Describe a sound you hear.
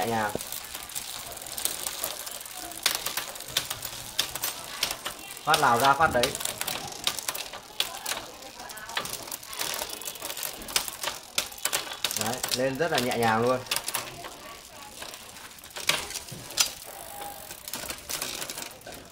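A bicycle freewheel clicks rapidly as it spins.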